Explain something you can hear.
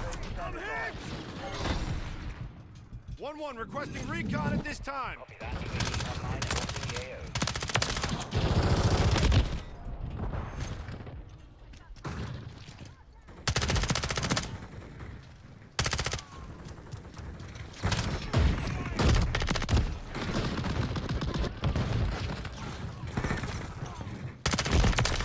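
Rapid gunfire rattles in sharp bursts.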